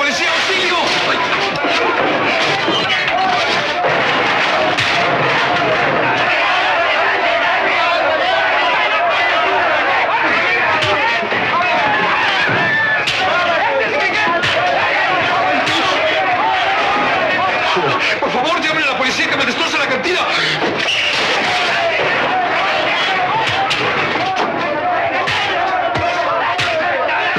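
A crowd of men shouts and cheers loudly.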